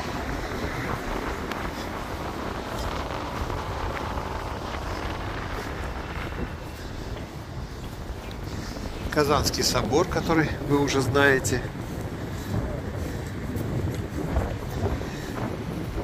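Traffic rumbles steadily along a nearby street outdoors.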